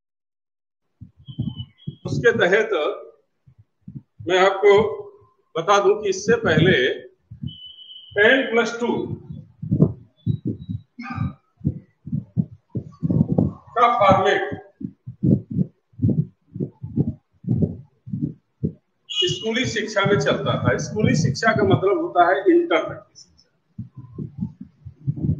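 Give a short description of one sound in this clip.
A man speaks calmly and clearly, like a teacher explaining.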